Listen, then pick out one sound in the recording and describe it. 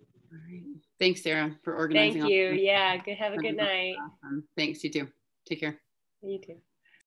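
A young woman speaks animatedly over an online call.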